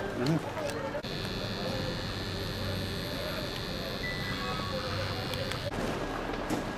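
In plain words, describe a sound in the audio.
A gas detector sounds a steady high alarm tone.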